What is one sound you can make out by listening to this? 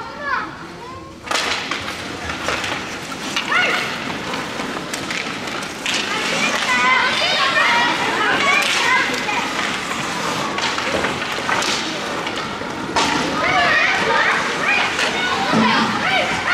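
Young players and spectators shout in an echoing rink.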